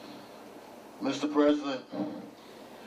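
A man speaks briefly through a microphone.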